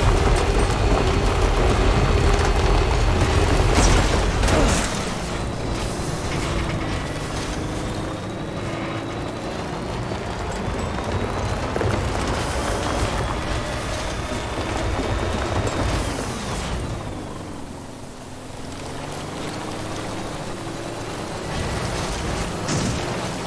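A truck engine rumbles and revs as the truck drives over rough ground.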